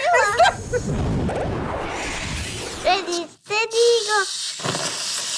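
Spray cans hiss in bursts.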